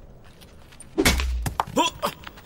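A gunshot cracks through window glass.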